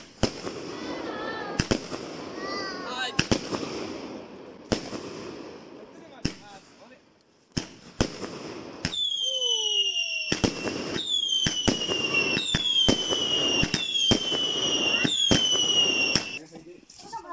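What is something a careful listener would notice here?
Fireworks burst with loud, sharp bangs outdoors.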